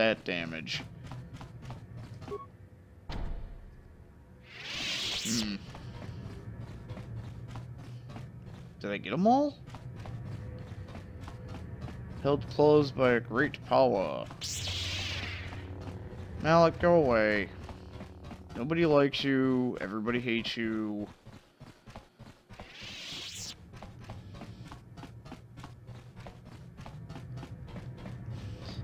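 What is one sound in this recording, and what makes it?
Quick footsteps run on a hard metal floor.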